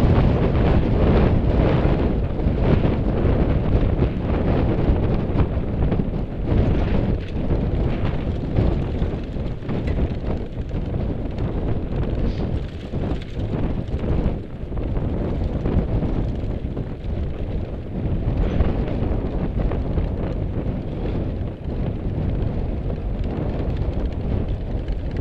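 Wind rumbles loudly across the microphone outdoors.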